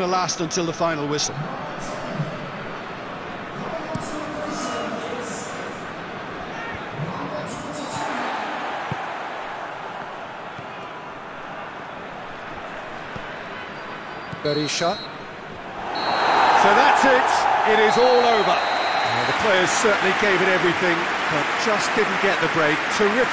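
A stadium crowd roars steadily and swells loudly toward the end.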